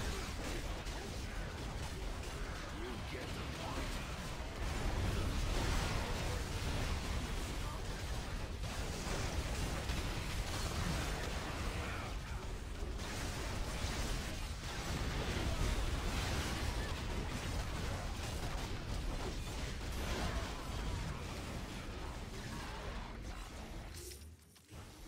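Video game combat sound effects clash and blast.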